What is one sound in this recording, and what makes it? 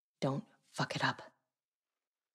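A woman speaks curtly, close by.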